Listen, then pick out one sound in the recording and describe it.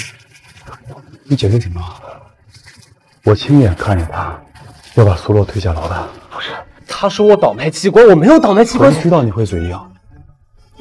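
A young man speaks tensely and pleadingly, close by.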